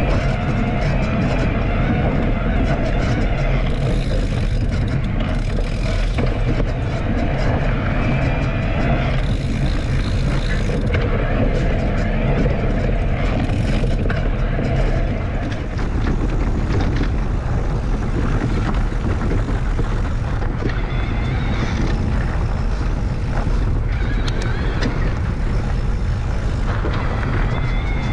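Knobby bike tyres roll and crunch over a dirt trail.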